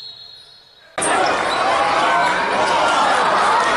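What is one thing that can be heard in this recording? A large crowd cheers loudly in an echoing hall.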